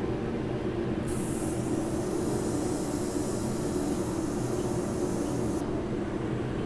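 An airbrush hisses steadily as it sprays paint.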